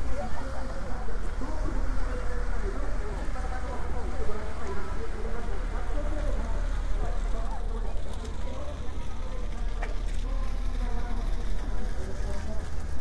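Footsteps tap on paving stones.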